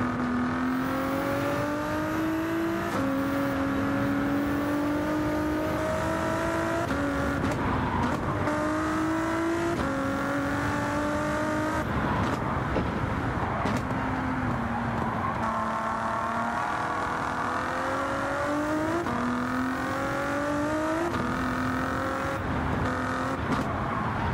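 A twin-turbo V6 race car engine revs hard and shifts up through the gears.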